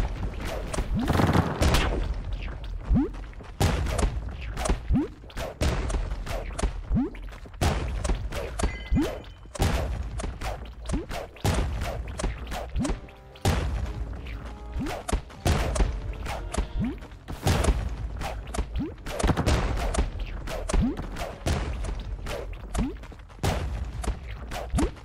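Game sound effects of repeated hits and squelching attacks sound throughout.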